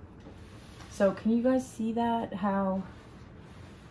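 A woman speaks briefly close by.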